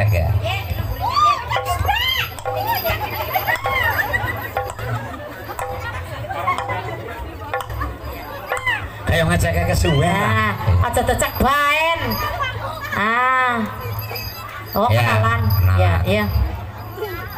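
A young woman sings through a loudspeaker with wavering, sliding notes.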